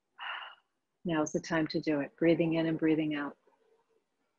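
A woman speaks calmly and clearly into a close microphone.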